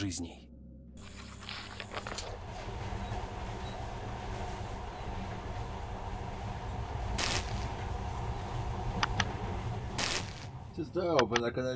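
A train carriage rumbles steadily as it rolls along.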